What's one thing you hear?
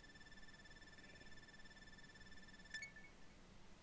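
A bright electronic chime rings steadily, then cuts off with a click.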